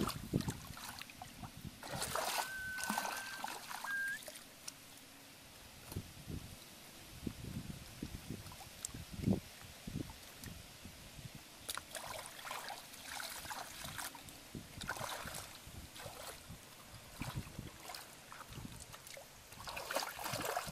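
Bare feet slosh through shallow muddy water.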